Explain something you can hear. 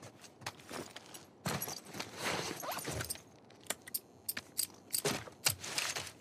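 A shotgun rattles and clanks as it is handled.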